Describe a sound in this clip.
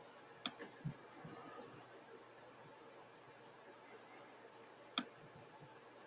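A book knocks softly as hands hold it up and shift it.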